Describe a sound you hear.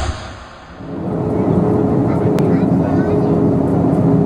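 A jet engine roars steadily from inside an airplane cabin.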